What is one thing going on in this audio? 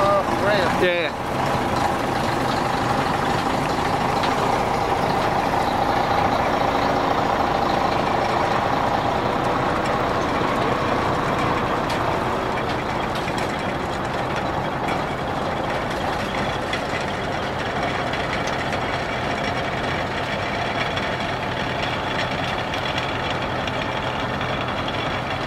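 A heavy tow truck's diesel engine rumbles steadily close by.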